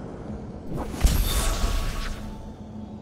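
A sword strikes with a sharp whoosh.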